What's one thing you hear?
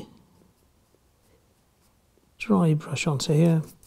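A small paintbrush dabs and scrapes softly on a metal model track.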